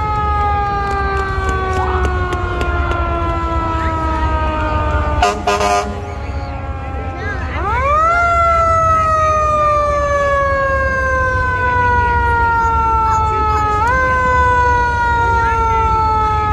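A siren wails and winds up again, fairly close.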